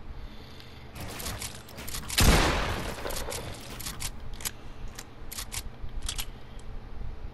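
Building pieces snap into place in quick clicks.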